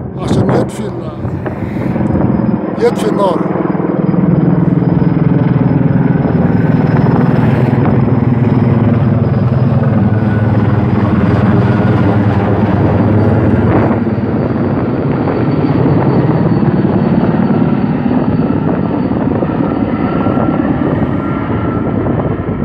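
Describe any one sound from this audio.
A helicopter's rotor thumps loudly overhead, outdoors.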